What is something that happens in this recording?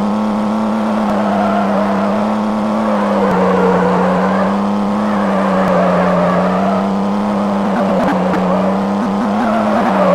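Tyres screech and skid on the road.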